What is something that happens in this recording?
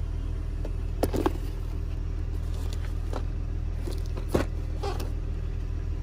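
Hands knock and rattle a plastic case.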